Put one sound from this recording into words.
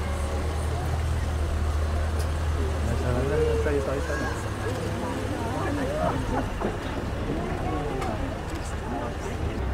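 A car engine hums low as the car rolls slowly past.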